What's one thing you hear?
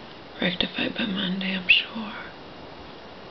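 A middle-aged woman speaks softly and sleepily, close by.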